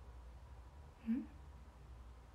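A young woman murmurs briefly and softly close by.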